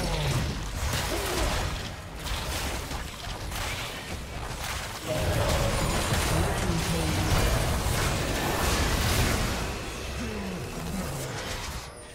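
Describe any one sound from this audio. Magic spells and sword strikes crackle and boom in a busy fight.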